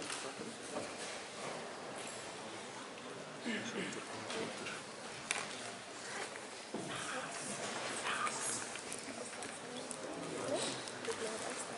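A marker squeaks and scrapes on a whiteboard.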